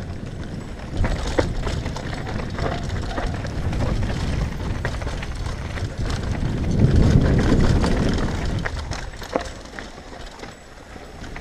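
A mountain bike rattles and clatters over bumps.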